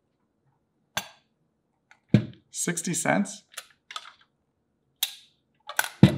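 A plastic cup clicks and rattles as it is handled.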